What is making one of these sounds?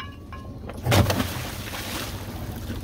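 Something splashes into the water.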